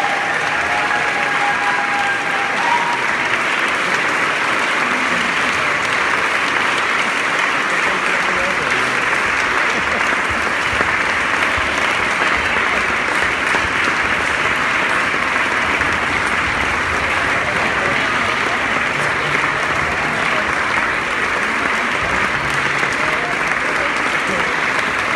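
An audience claps and applauds steadily.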